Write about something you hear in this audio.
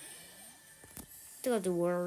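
A video game weapon fires a shot.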